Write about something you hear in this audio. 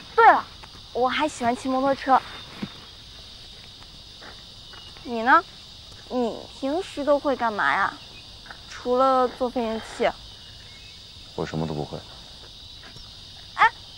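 A young woman speaks nearby in a lively, questioning voice.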